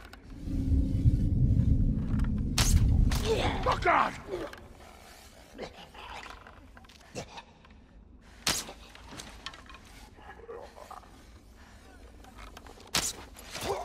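A bowstring creaks as a bow is drawn and slowly eased back.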